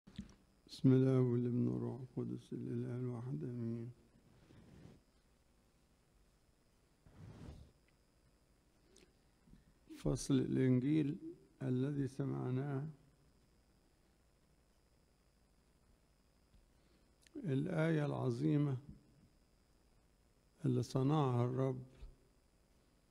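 An elderly man speaks slowly and calmly into a microphone, in short phrases with long pauses, in a large echoing hall.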